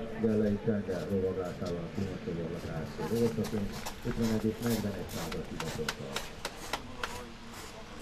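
Horses' hooves thud softly on sand.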